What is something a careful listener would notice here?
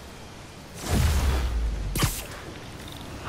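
A bright energy burst whooshes and crackles.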